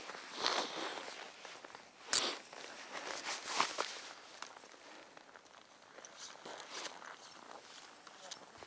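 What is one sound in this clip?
A man speaks outdoors, close by.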